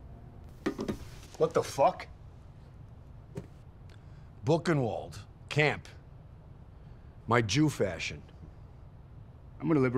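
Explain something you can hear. A young man speaks tensely nearby.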